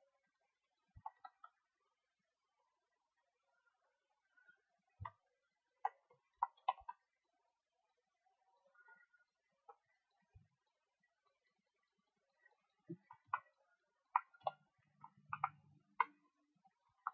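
Short game sound effects click and knock now and then.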